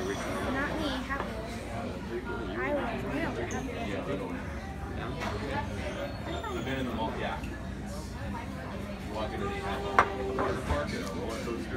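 Young girls talk and chatter nearby.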